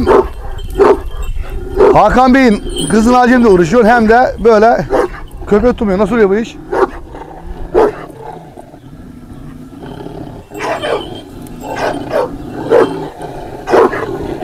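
A large dog barks deeply and loudly, close by.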